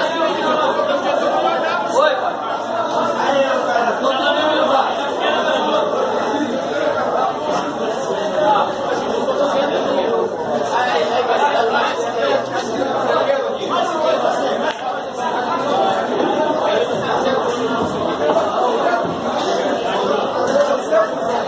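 Several men chatter and talk over one another nearby.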